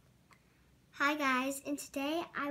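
A young girl speaks nearby with animation.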